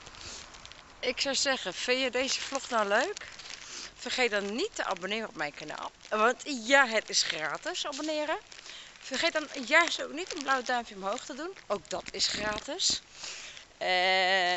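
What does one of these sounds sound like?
A woman talks with animation close to the microphone.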